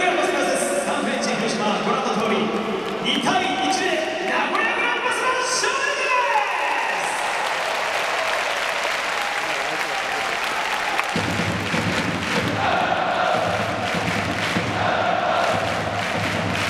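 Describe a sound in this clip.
A large crowd sings and chants loudly in a big open stadium.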